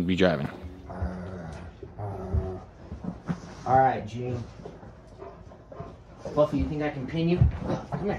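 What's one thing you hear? Dogs growl and yelp as they play.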